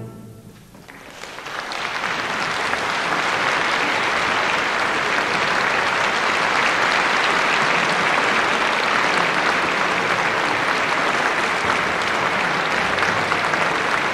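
A large audience applauds loudly in a large hall.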